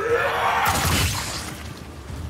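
A gunshot blasts.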